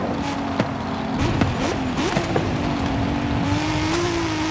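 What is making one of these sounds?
Tyres rumble and crunch over rough dirt.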